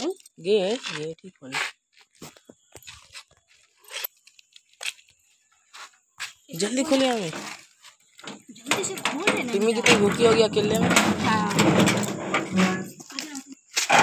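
Keys jingle and click in a door lock.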